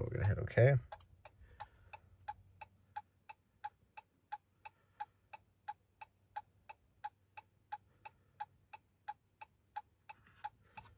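An electronic device beeps at a steady, quick pace.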